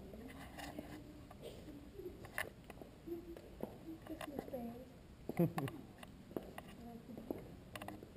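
Boot heels click on a stone path.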